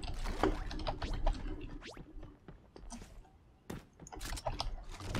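Quick footsteps patter on roof tiles.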